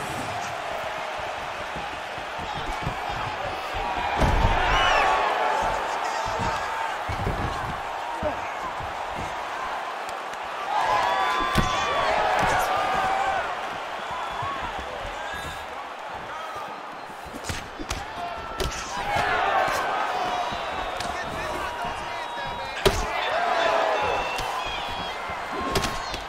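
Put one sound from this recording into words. A crowd cheers and murmurs throughout.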